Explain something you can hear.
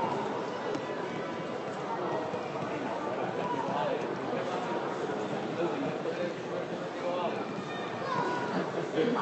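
Men chatter and call out nearby, outdoors in an open stadium.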